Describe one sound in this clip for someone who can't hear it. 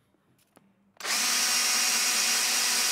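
A power screwdriver whirs loudly, driving a screw into wood.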